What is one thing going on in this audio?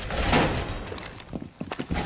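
A rifle fires a few quick shots.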